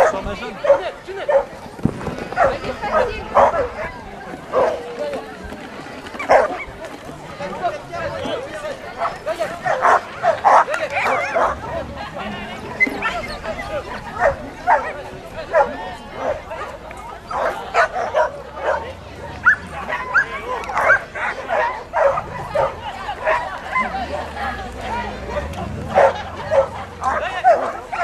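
A crowd of onlookers chatters outdoors.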